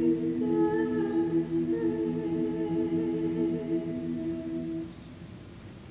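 A choir of young women sings a sustained chord in a large echoing hall.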